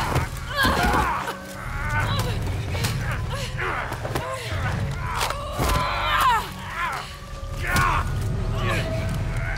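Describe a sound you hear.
A man grunts and groans as he struggles, close by.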